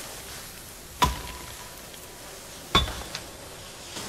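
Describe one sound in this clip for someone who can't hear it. A sharp magical blast strikes with a whoosh.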